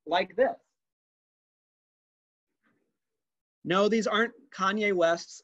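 A young man speaks calmly close to a microphone, heard as if through an online call.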